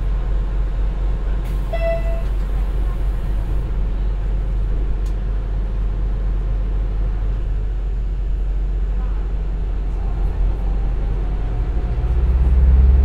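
A diesel engine idles with a low, steady rumble.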